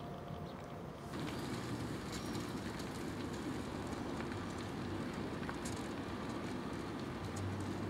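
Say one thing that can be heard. Dogs' paws and a person's footsteps crunch on gravel.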